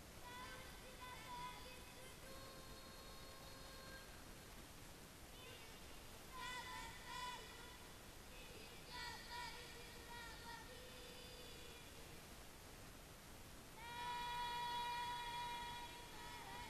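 Young girls chant a melodic recitation together through microphones and loudspeakers.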